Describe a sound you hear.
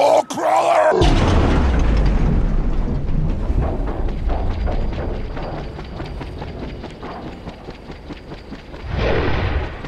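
A helicopter's rotor chops loudly and steadily close by.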